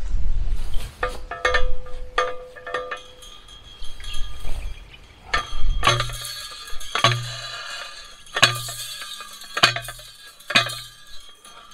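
A metal post driver clangs down repeatedly on a fence post.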